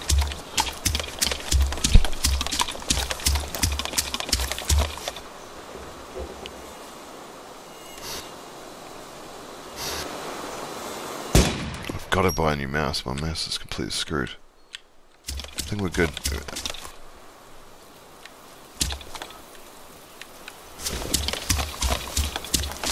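Footsteps thud and rustle through grass at a steady walking pace.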